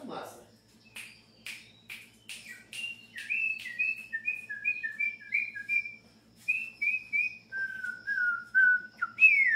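A small caged bird chirps in quick, bright notes, close by.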